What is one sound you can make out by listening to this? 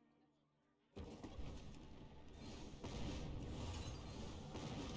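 A fireball spell whooshes and explodes with a loud roar.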